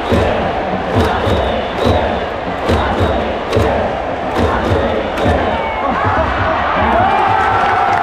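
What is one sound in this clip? Fans clap in a steady rhythm.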